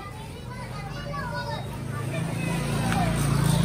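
A motorbike engine idles close by.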